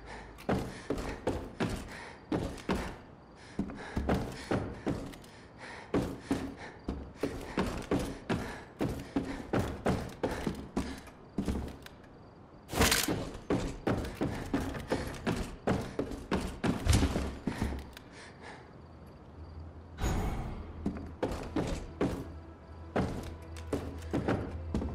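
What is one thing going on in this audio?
Footsteps thud on wooden floorboards at a quick pace.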